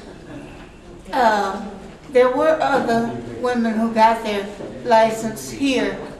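An elderly woman speaks slowly and calmly close by.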